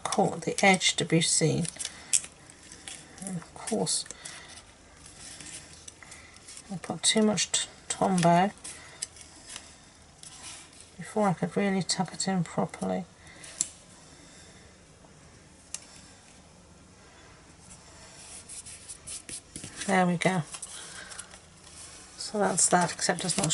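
Card stock rustles and taps softly as hands press it down.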